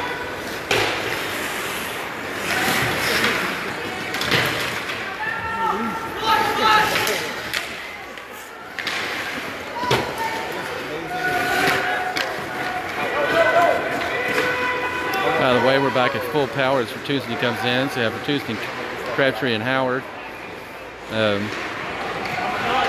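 Skate blades scrape across the ice.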